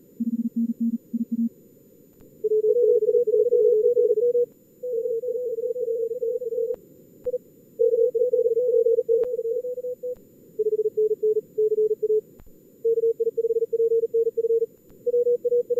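Morse code tones beep in quick, steady bursts.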